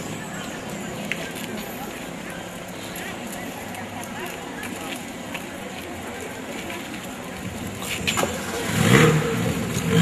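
Footsteps shuffle on pavement.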